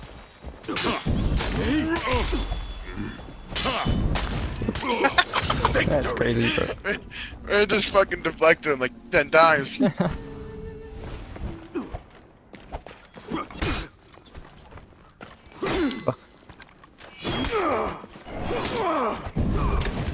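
Swords clash and ring with metallic strikes.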